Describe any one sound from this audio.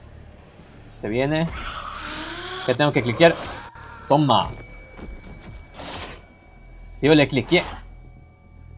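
A man grunts and strains while struggling.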